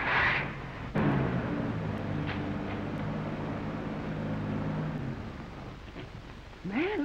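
A car engine starts and idles with a steady hum.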